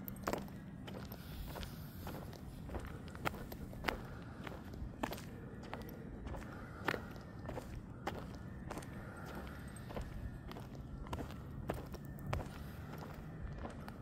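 Footsteps scuff steadily on a rough paved road outdoors.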